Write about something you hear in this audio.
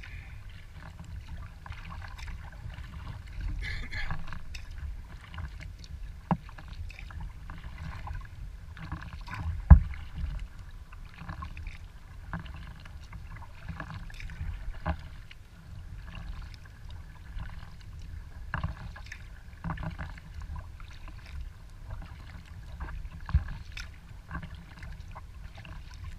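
Paddle strokes splash and drip in calm water.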